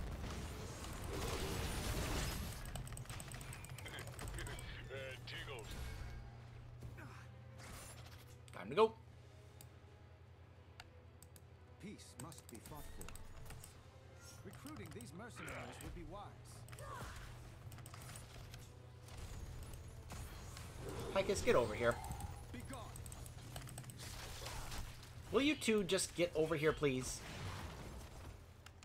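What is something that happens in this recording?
Magic blasts and weapon clashes burst during a fight.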